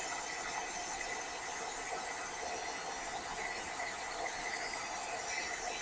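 A heat gun blows with a steady whirring hiss.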